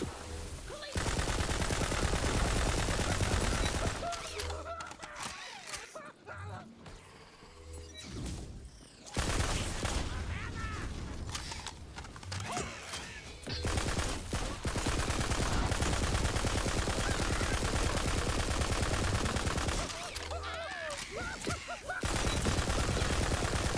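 An automatic gun fires in bursts.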